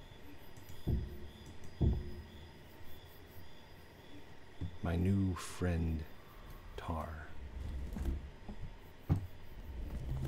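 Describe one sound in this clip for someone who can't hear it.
Wooden blocks knock into place with short thuds.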